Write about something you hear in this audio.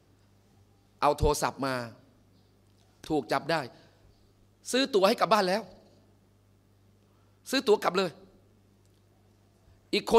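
A middle-aged man speaks into a microphone in short, animated bursts with pauses between.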